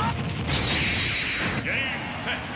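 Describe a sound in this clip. A video game explosion booms with crackling energy.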